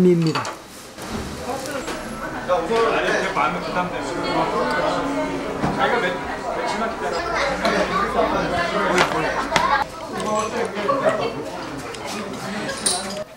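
Several men and women chatter and talk over one another nearby.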